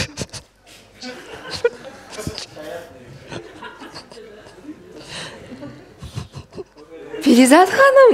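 A woman talks into a microphone.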